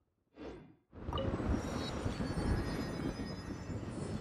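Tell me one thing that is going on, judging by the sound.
A magical whoosh and chime ring out as a beacon activates.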